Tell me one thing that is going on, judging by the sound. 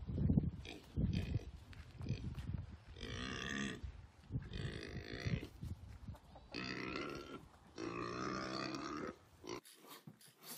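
A dog snorts and whines close by.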